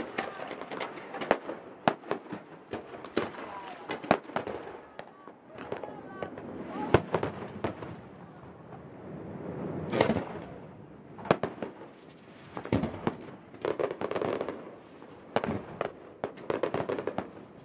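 Fireworks bang and boom loudly outdoors.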